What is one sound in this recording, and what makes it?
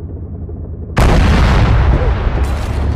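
A rocket fires with a sudden, loud roaring blast.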